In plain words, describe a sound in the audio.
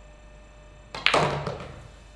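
A cue strikes a pool ball with a sharp click.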